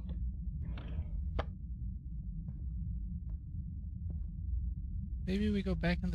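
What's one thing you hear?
Footsteps creak on a wooden floor.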